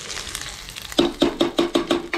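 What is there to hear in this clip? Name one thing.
A metal ladle knocks repeatedly against the rim of a metal pot.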